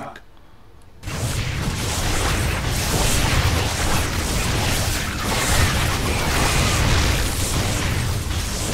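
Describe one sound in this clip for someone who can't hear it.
Laser weapons fire in rapid, continuous blasts.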